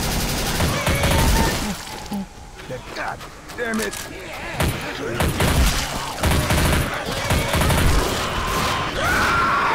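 Zombies snarl and growl close by.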